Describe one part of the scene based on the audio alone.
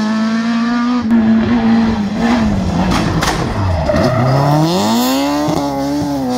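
A second rally car's engine revs hard as it approaches and powers through a hairpin.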